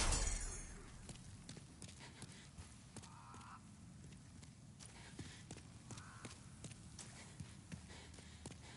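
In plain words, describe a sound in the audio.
Footsteps in armour clink on stone steps.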